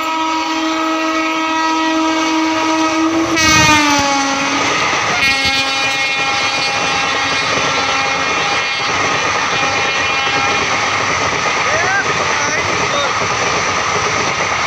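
A fast train roars and rattles past on the tracks.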